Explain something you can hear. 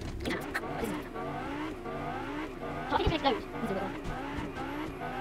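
A car engine hums and revs in a video game.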